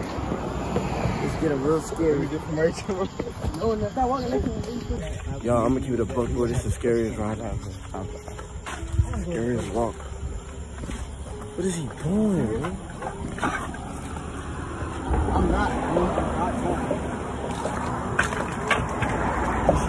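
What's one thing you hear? A young man talks casually and close to a phone's microphone.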